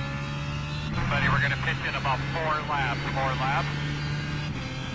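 Tyres squeal around a corner.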